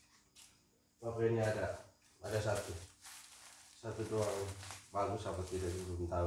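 Plastic bubble wrap rustles and crinkles close by.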